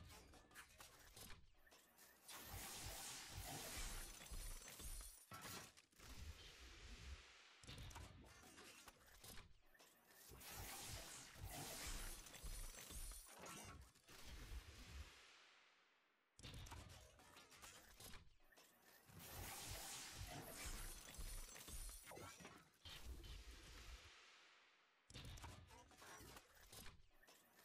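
A game's loot box crackles with electric bursts and whooshes open.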